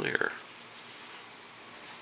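A paintbrush swishes softly across a canvas.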